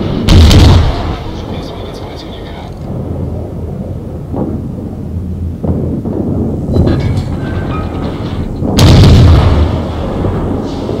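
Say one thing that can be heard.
Heavy guns fire with deep, rumbling booms.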